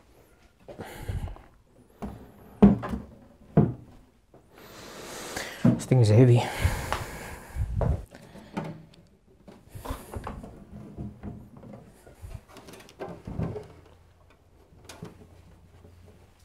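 A computer case knocks and scrapes on a shelf.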